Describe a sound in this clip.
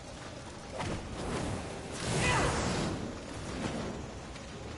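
A fiery explosion bursts with a roar.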